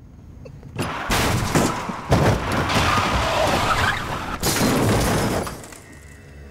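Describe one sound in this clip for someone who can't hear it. A car hits a person with a heavy thud.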